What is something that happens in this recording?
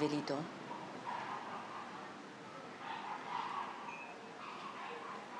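Another middle-aged woman speaks calmly, close by.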